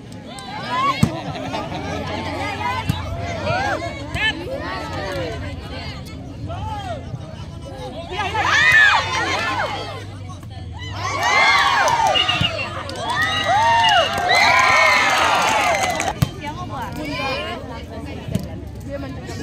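A ball is struck with sharp slaps.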